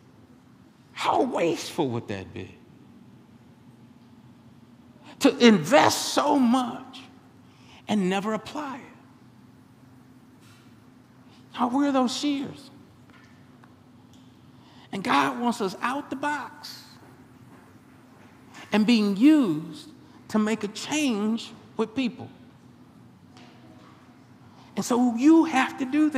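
A man preaches with animation through a microphone, in short bursts with pauses between them.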